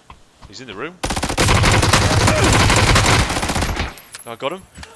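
Automatic gunfire rattles in a rapid, loud burst.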